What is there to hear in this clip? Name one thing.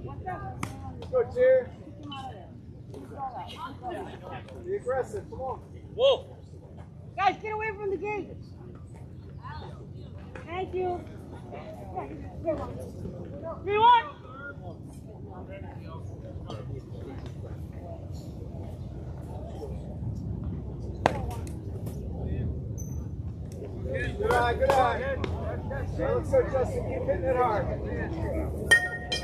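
Young men and boys call out and chatter outdoors.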